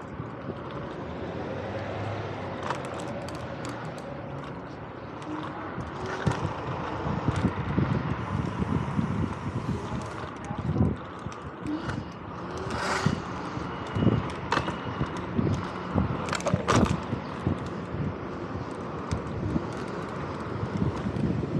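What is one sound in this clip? Tyres roll and rattle over pavement.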